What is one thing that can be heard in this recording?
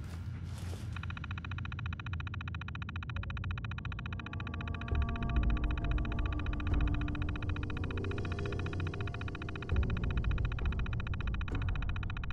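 A computer terminal chatters rapidly and steadily as text prints.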